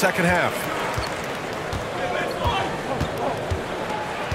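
A basketball bounces repeatedly on a hardwood floor.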